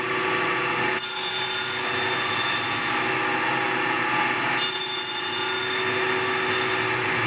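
A saw blade cuts through wood with a harsh hiss.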